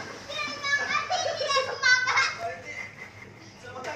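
A young child laughs.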